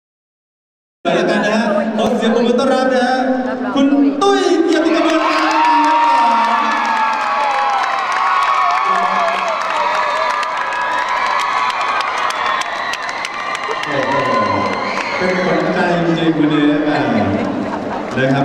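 A crowd claps and cheers in a large echoing hall.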